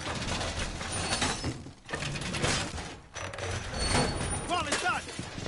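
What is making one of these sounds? Metal clanks and rattles as a heavy panel is fitted against a wall.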